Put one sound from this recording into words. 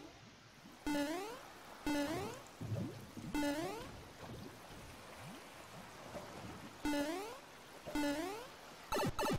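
Short rising cartoon jump sounds chirp again and again.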